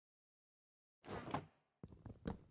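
A wooden chest closes with a dull thud.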